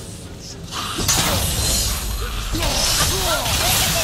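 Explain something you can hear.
An icy blast bursts with a loud rushing crash.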